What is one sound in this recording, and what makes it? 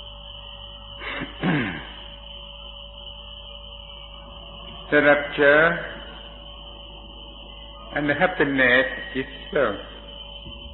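An elderly man speaks slowly and calmly, with long pauses, through an old, hissy recording.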